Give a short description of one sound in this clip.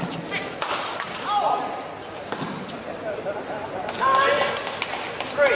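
Badminton rackets strike a shuttlecock with sharp smacks in a large echoing hall.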